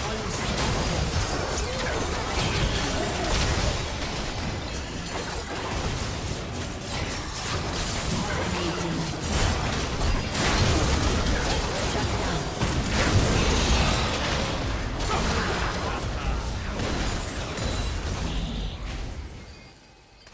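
Spells, hits and explosions from a fast game battle crash and boom over one another.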